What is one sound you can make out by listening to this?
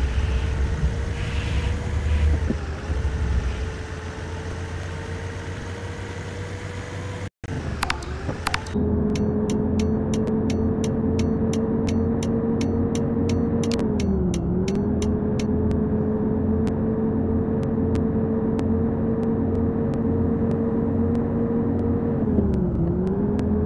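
A bus engine hums steadily, its pitch dipping briefly as it changes gear.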